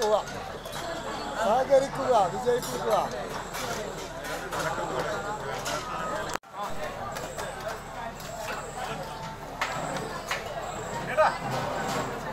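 Metal ladles clink against serving pots.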